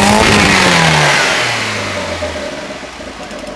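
A car engine revs high and its pitch quickly drops.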